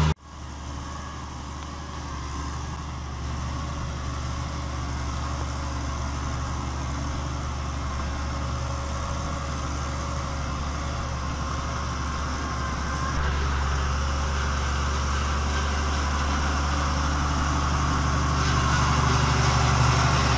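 A tractor engine runs with a steady low rumble close by.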